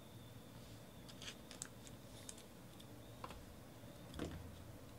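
Trading cards rustle and tap softly as they are handled.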